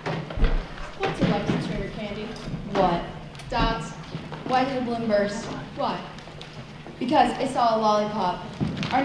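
A teenage girl speaks with animation through a microphone in a large echoing hall.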